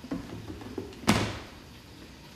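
A lid clicks onto a blender jar.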